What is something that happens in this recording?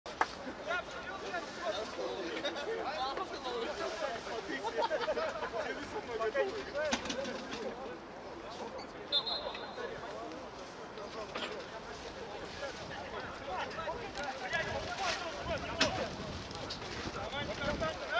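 Several men talk and call out to each other outdoors.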